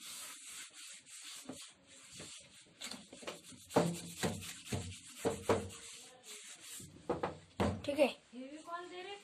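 A sponge eraser scrubs and squeaks across a whiteboard.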